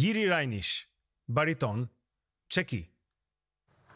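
A young man speaks calmly and close up.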